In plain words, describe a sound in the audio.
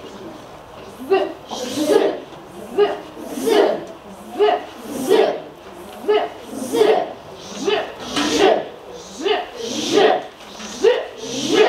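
A group of children chant loudly together in rhythmic bursts.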